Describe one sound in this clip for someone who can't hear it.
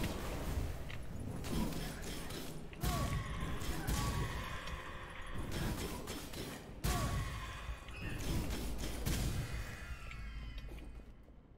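Fiery blasts and impacts boom during a fast fight.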